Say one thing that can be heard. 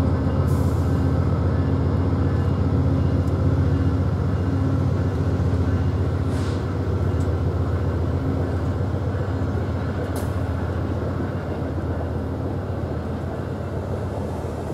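A passenger train rumbles past close by, with a steady low roar.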